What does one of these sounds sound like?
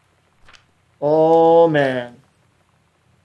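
A young man speaks briefly with a drawn-out, sing-song voice, close to a microphone.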